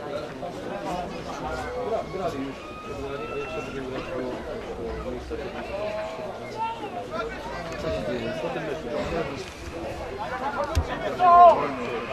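Young men call out and shout to each other outdoors.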